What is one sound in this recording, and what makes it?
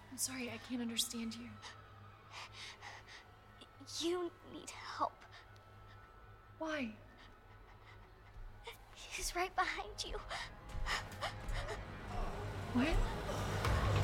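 A young woman speaks anxiously in a hushed voice.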